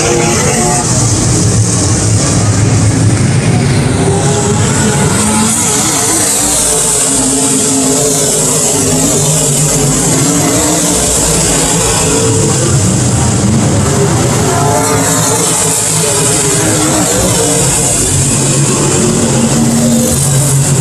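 A race car zooms past close by.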